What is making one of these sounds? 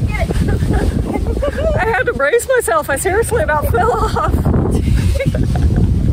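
A woman laughs loudly close to a microphone.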